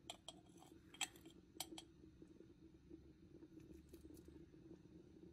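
A metal spoon taps against the rim of a pot.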